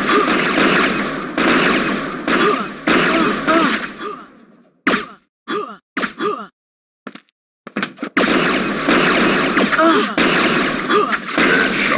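A beam gun fires with sharp zaps.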